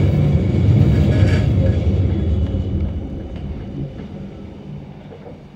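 A train rumbles along the tracks and slows to a stop.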